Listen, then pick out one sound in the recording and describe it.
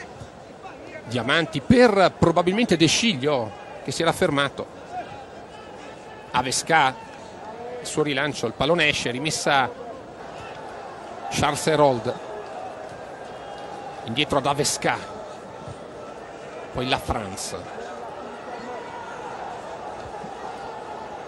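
A large crowd murmurs steadily in the distance.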